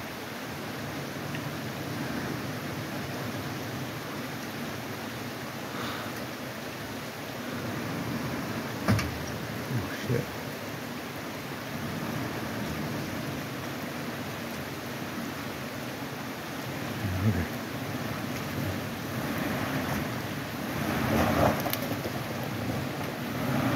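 An engine rumbles steadily as an off-road vehicle drives slowly through a shallow creek.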